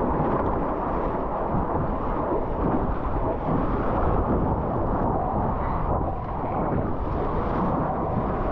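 Waves churn and splash loudly around the listener.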